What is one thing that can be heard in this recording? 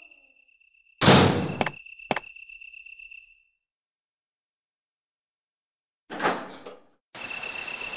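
A heavy metal door creaks and thuds open.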